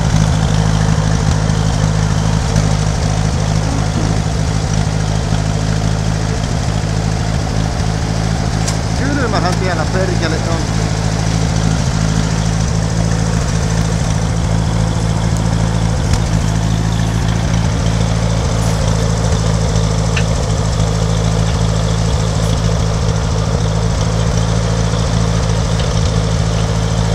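An engine idles steadily close by.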